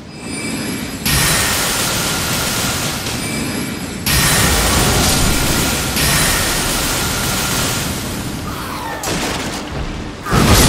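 Magic spells burst and whoosh loudly.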